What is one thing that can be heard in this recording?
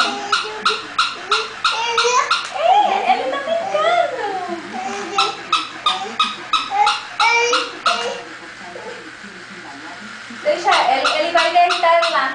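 A toy dog gives out a quick run of short, repeated electronic sounds.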